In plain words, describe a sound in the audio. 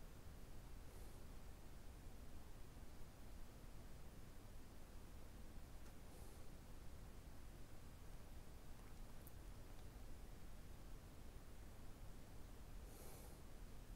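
A man breathes slowly and softly nearby.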